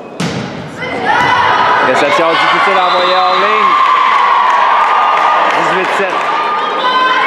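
Young women players shout and call to each other in an echoing gym.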